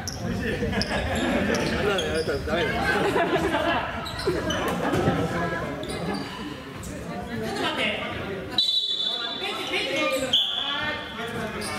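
Young players and onlookers shout and chatter in a large echoing hall.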